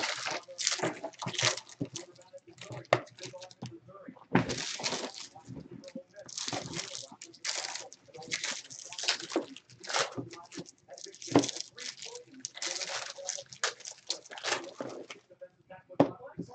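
Foil wrappers crinkle and tear as card packs are ripped open.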